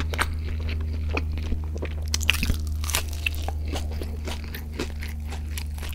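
Crispy food crunches as a man bites into it.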